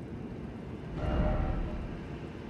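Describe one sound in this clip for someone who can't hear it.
A deep, booming whoosh sounds suddenly as a map opens.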